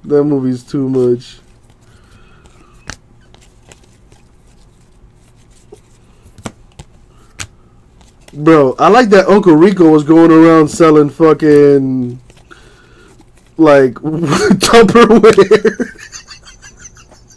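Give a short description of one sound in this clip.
Trading cards flick and rustle as they are shuffled by hand.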